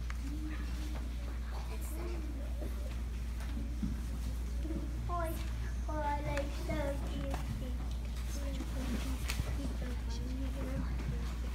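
A woman speaks calmly through a microphone in an echoing room.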